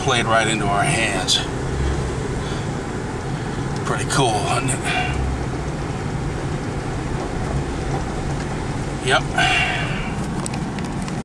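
A middle-aged man talks calmly close by.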